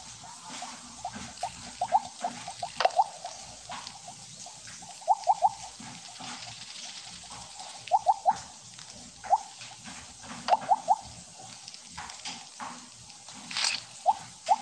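Short bright chiming blips sound in quick bursts.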